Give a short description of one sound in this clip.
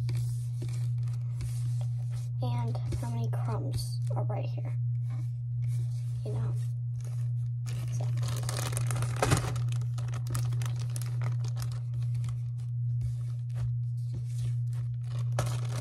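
Soft sand crumbles and squishes between fingers close up.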